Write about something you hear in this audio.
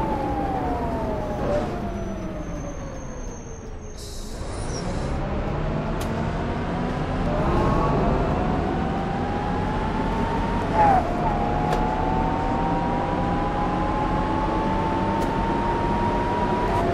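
A bus engine hums, its pitch falling as the bus slows and then rising steadily as it speeds up again.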